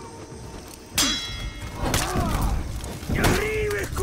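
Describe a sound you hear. Metal blades clash and clang.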